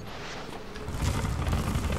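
A hand brushes against a rough wall.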